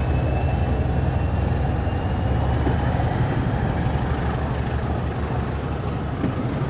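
A passenger train rumbles past close by, wheels clattering on the rails.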